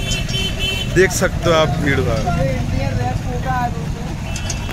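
Men talk loudly nearby outdoors.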